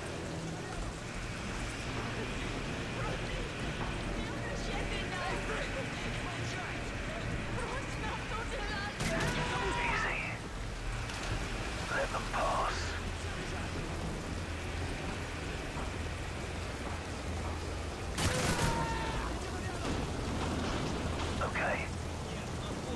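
Rain patters steadily onto water.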